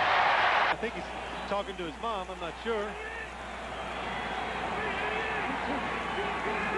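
A large stadium crowd murmurs and cheers in the distance.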